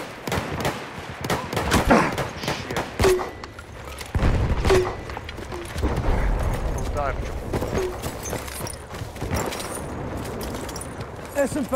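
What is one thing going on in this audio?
Gunshots crack repeatedly nearby.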